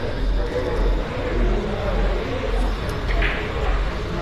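Billiard balls click together on a table.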